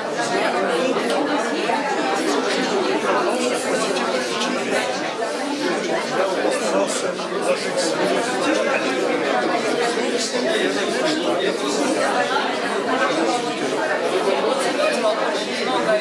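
An elderly man speaks into a microphone close by, in a talkative, steady way.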